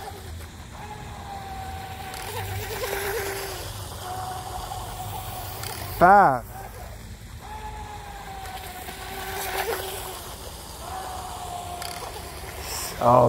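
A small model boat motor whines steadily across the water, rising and falling in pitch.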